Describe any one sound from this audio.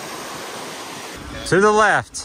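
A stream babbles over stones.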